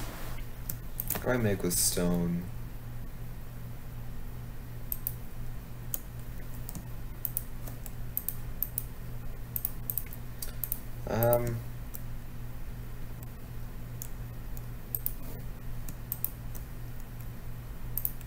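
Short, sharp clicks sound now and then as items are picked.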